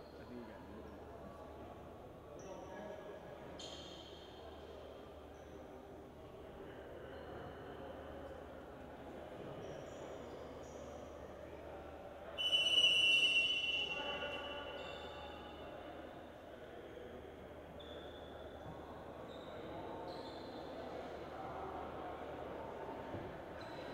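Players' sneakers squeak on a hardwood court in a large echoing gym.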